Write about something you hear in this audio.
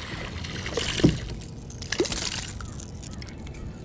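A fish splashes in the water beside a boat.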